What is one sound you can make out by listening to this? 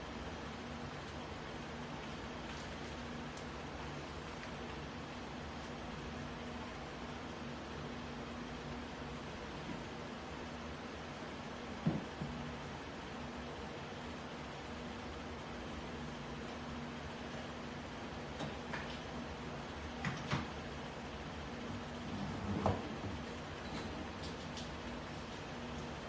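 A woman's footsteps tap on a tiled floor.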